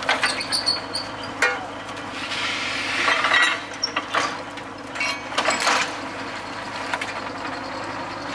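A drilling rig engine runs steadily.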